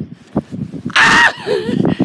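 A man shouts from a distance.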